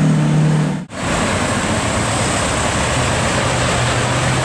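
A second sports car engine rumbles low nearby.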